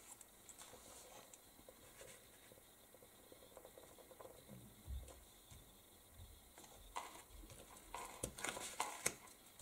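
Paper card slides and taps on a table as hands press it down.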